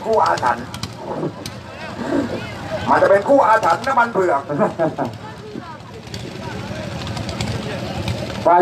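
A crowd of people talks and calls out outdoors nearby.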